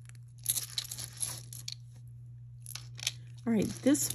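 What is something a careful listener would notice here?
Beads and metal jewellery clink and rattle softly close by.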